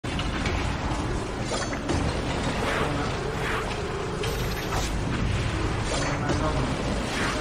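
Spell effects whoosh and crackle in a fast game battle.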